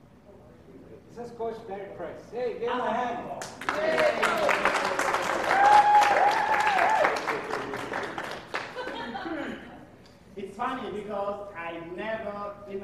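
A man speaks loudly to a group across a large echoing hall.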